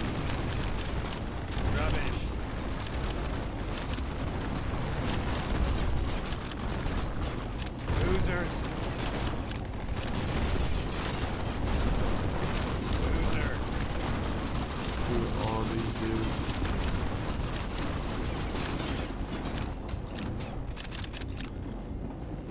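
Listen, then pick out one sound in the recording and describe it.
Gunfire and explosions crackle and boom in rapid bursts.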